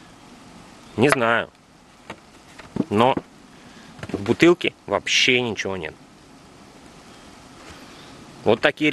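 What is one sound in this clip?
A man speaks calmly, close by.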